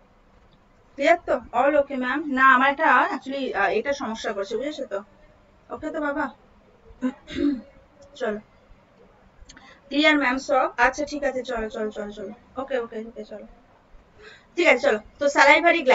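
A young woman speaks calmly into a close microphone, lecturing.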